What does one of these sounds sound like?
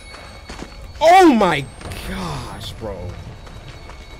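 A young man yells loudly into a close microphone.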